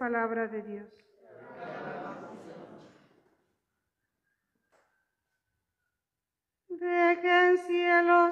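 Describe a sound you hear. An elderly woman sings close by.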